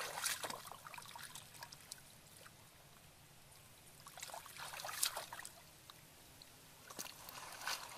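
Bare feet squelch in shallow muddy water.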